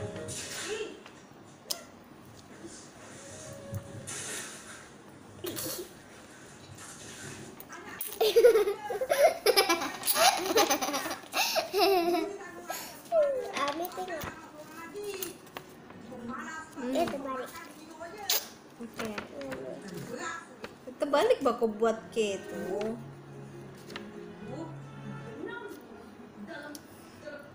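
A young girl chews and slurps an orange.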